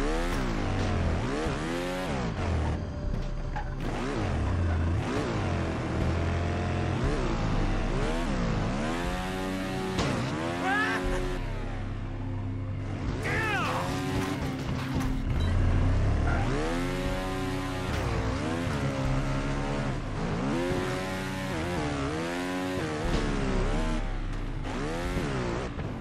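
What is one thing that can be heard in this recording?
A motorbike engine revs up and down, rising and falling in pitch.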